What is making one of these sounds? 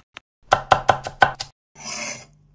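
A knife taps rapidly on a wooden board.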